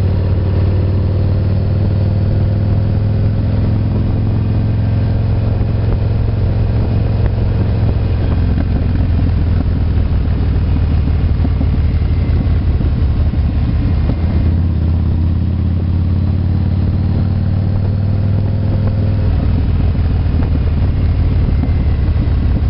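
A motorcycle engine hums steadily up close, rising and falling with the throttle.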